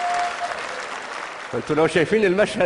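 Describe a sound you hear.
A crowd claps and cheers in a large hall.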